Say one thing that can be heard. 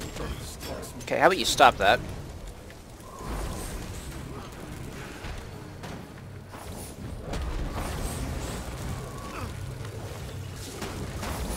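Weapons strike and spells burst during a fantasy video game battle.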